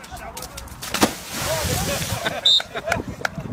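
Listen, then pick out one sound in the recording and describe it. A person belly-flops into water with a loud splash.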